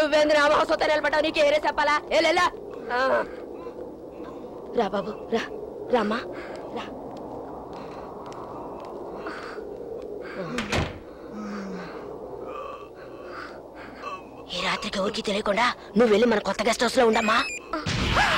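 A woman speaks with emotion, close by.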